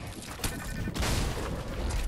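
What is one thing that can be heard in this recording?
A pickaxe strikes a wall with a thud.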